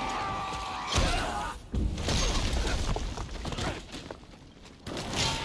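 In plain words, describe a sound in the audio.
Rocks crash down and rubble tumbles.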